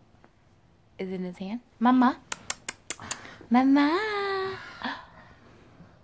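A baby babbles and squeals.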